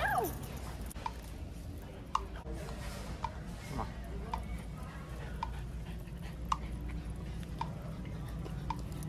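Dog tags jingle and claws click on a hard floor as a dog walks.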